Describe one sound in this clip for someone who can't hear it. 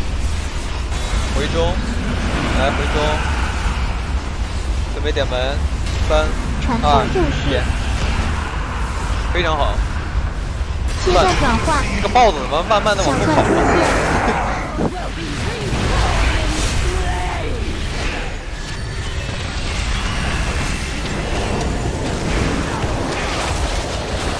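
Magic spells burst and whoosh in a busy fantasy battle.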